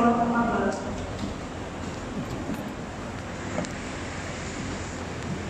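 Footsteps shuffle softly on a wooden floor in a large echoing hall.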